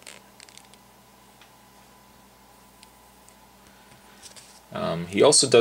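Plastic toy parts click and tap softly as hands handle them.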